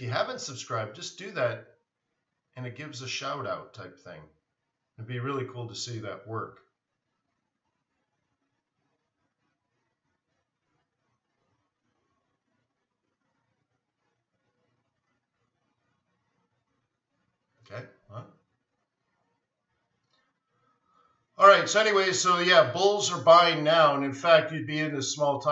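A man talks calmly through a microphone, as on an online call.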